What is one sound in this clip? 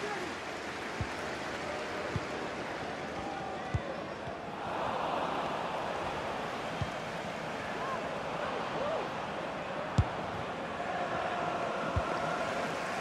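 A football is kicked with dull thuds again and again.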